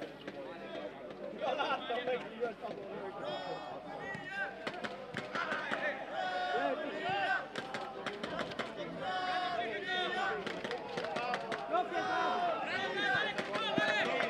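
Men shout to each other across an open outdoor pitch.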